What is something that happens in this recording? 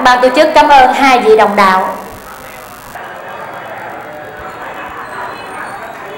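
A middle-aged woman speaks in a drawn-out, sing-song voice through a microphone.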